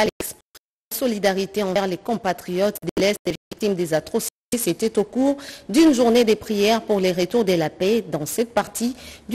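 A woman reads out calmly into a microphone, close by.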